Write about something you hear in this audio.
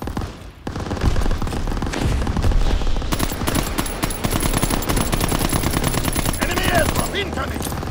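A machine gun fires in rapid, loud bursts.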